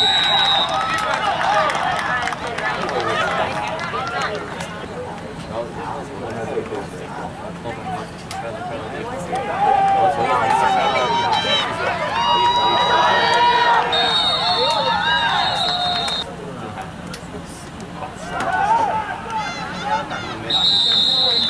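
A crowd of young players and onlookers shout and chatter outdoors.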